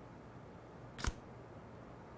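A card taps down onto a table.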